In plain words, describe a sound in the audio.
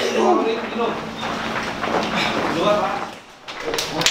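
Young men chatter and shout in an echoing room.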